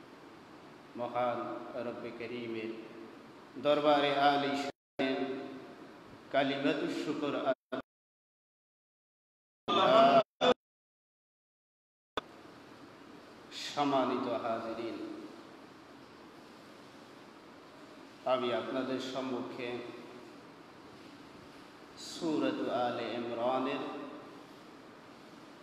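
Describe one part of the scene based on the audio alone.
A man chants in a melodic voice through a microphone and loudspeaker, with pauses between phrases.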